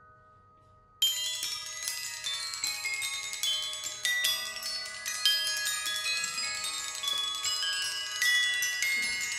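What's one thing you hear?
Percussion instruments play a fast, ringing pattern in a large room.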